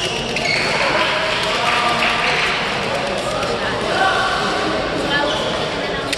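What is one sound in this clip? Young women and men call out and chatter across the hall.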